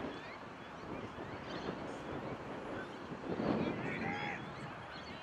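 Players shout on a distant field outdoors.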